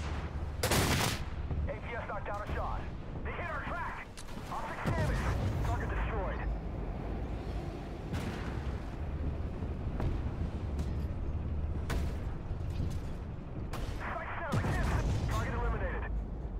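Shells explode with heavy, crackling bursts.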